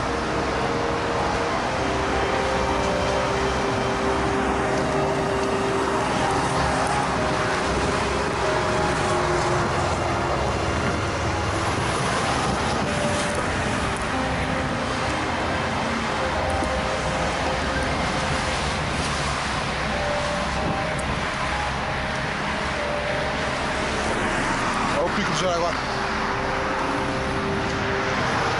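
Traffic roars steadily on a busy road below.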